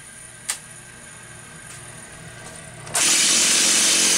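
A man yanks a chainsaw's starter cord.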